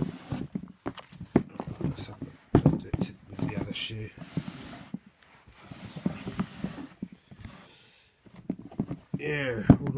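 Shoes rustle and bump against paper as they are handled close by.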